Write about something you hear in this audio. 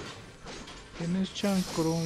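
A pickaxe strikes metal with a sharp clang.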